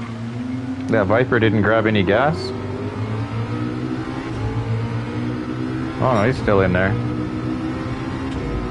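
A racing car engine drones steadily and rises in pitch as it speeds up.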